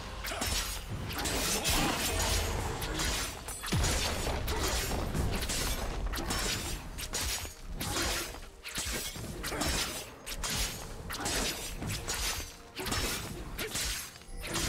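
Game combat sound effects clash and whoosh as a character fights monsters.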